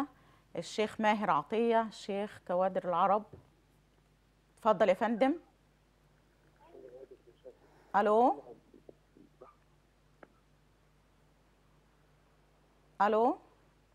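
A middle-aged woman speaks calmly into a microphone, in short bursts with pauses.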